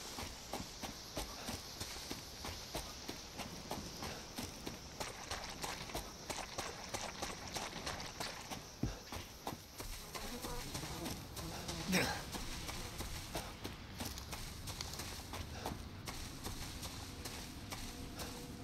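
Footsteps crunch through dry leaves and undergrowth at a steady walking pace.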